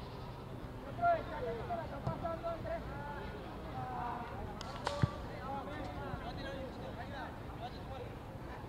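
Young players shout and call out to each other outdoors.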